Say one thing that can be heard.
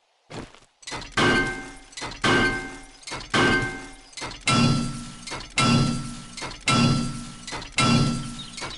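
A heavy wrench clangs against a metal unit again and again, in a steady rhythm.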